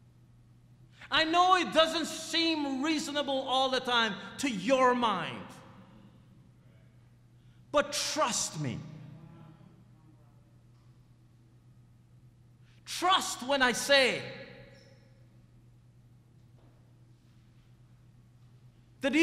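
A middle-aged man speaks with animation through a microphone, in bursts with long pauses.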